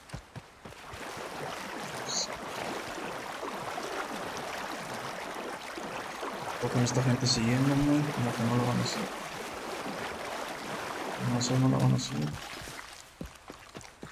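Water splashes as a man wades through a river.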